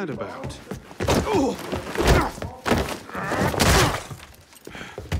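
Bodies thud and crash in a scuffle.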